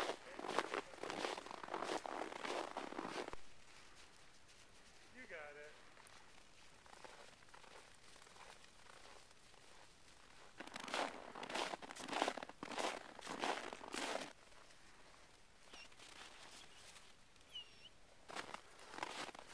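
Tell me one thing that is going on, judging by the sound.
Footsteps crunch on snow close by.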